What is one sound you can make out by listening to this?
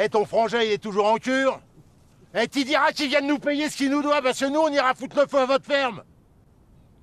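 An elderly man shouts with animation outdoors.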